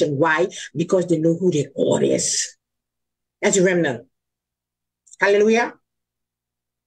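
An elderly woman speaks with animation through an online call, pausing between phrases.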